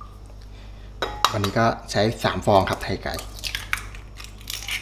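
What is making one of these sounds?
An egg cracks against the rim of a ceramic bowl.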